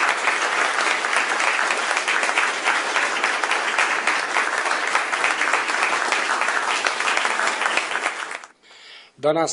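A group of people applaud steadily.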